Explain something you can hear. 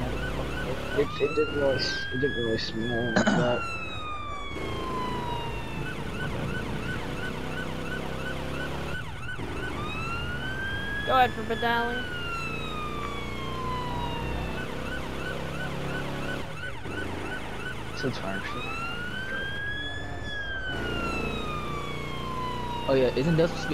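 A police siren wails, rising and slowly falling again and again.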